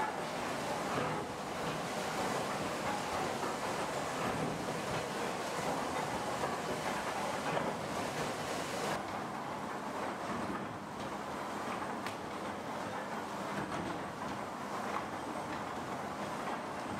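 Factory machinery rumbles and rattles steadily.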